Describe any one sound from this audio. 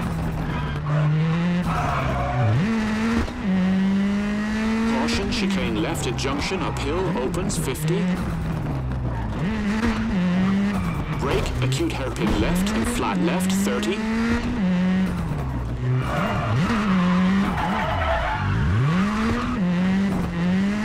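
A rally car engine revs hard, rising and falling as it shifts gears.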